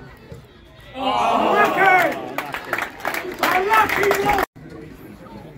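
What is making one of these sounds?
A crowd of spectators cheers loudly.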